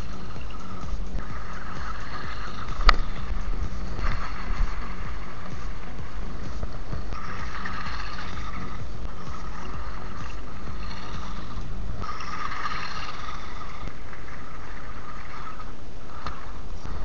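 An electric motor whines as a toy car drives over dirt.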